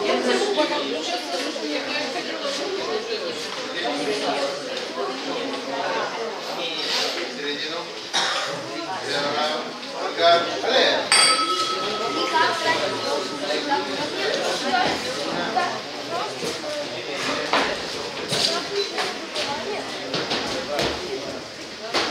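A crowd chatters throughout in an echoing hall.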